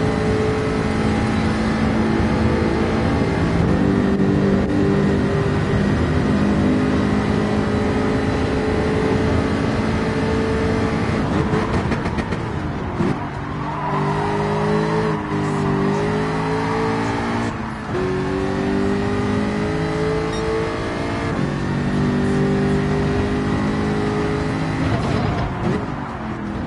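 A race car engine roars at high revs and shifts up through the gears.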